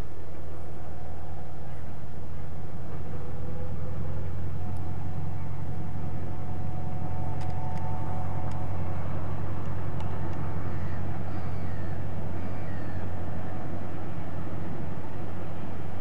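A diesel locomotive rumbles steadily in the distance as it hauls a freight train.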